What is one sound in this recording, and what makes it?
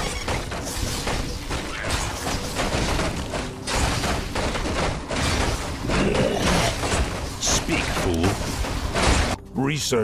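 Spells and weapons clash in a noisy battle.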